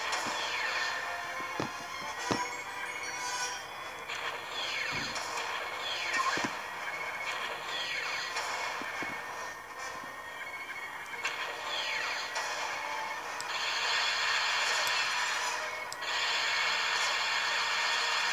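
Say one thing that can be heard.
Laser blasts fire repeatedly in a video game.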